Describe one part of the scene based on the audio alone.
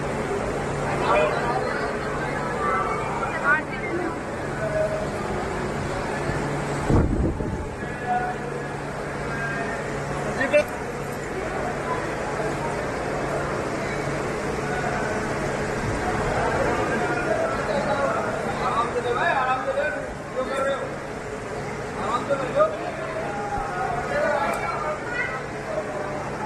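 A crowd of men shouts and chants loudly close by, echoing in a hall.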